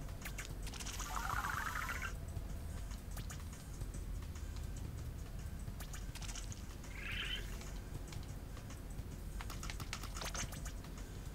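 Video game music and chimes play as game results tally up.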